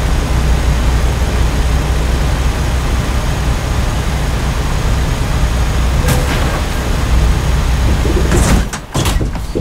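A heavy truck engine rumbles steadily while driving along a road.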